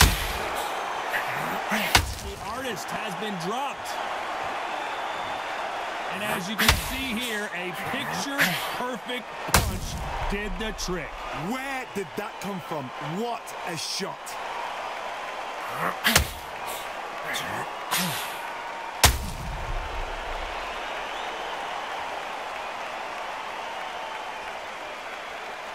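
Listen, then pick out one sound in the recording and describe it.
A crowd roars and cheers throughout.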